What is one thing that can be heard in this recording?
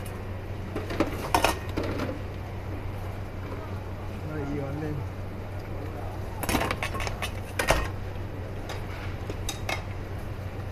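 Metal utensils clink and clatter against bowls and pots.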